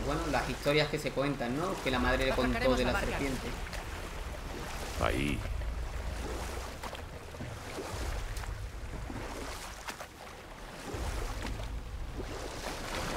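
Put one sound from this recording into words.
An oar paddles through water with soft splashes.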